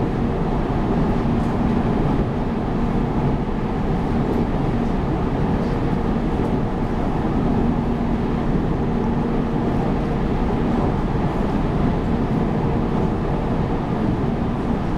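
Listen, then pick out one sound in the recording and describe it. A train's motor hums with a steady low whine.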